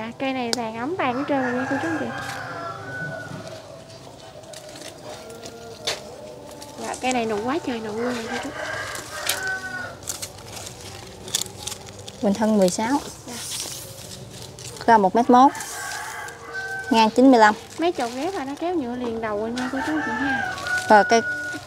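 A woman talks with animation nearby.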